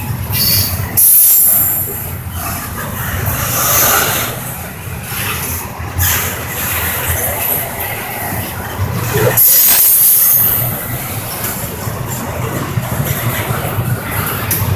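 A freight train rumbles steadily past on the tracks.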